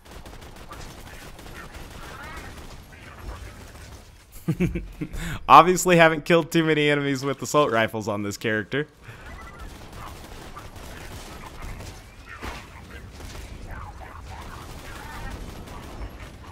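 Rapid gunfire bursts and booms.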